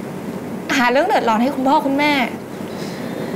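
A young woman speaks up close in an upset, pleading voice.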